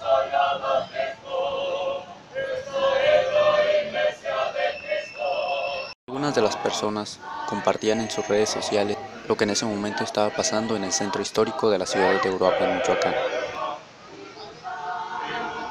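A choir sings together outdoors.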